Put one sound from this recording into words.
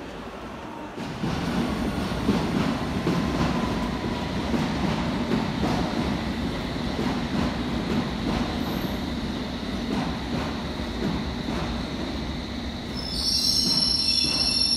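An underground train rumbles loudly past, echoing off the walls.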